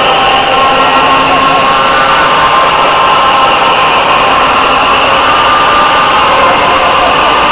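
A large crowd cheers and ululates in the distance outdoors.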